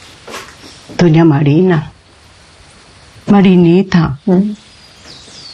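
An older woman speaks softly and gently close by.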